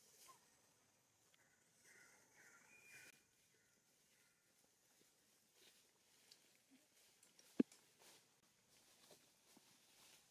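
Dry leaves rustle under moving monkeys.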